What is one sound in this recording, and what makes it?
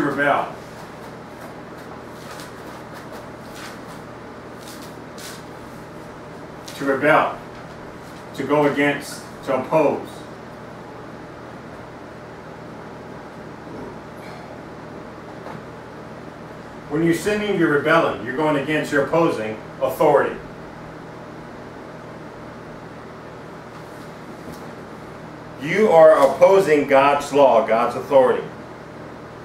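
A man speaks in short bursts, with pauses between.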